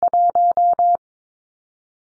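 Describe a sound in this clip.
Morse code beeps sound in a quick, steady run.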